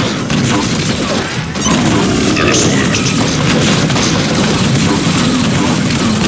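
A plasma gun fires in rapid bursts.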